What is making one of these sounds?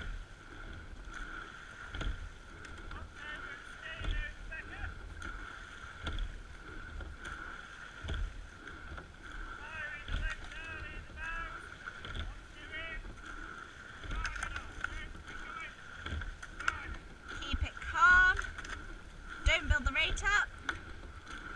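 Water splashes and rushes along a boat's hull.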